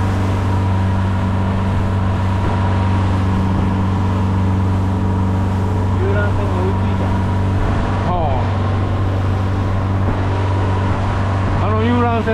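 Water rushes and splashes against the hull.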